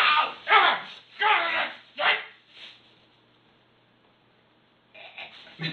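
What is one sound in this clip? A young person shrieks with laughter close by.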